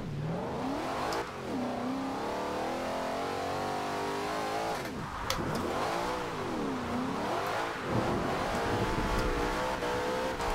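A car engine revs hard, rising and falling as gears shift.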